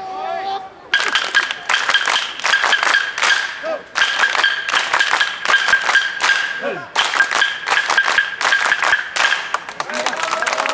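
A crowd claps hands together in a brisk rhythm.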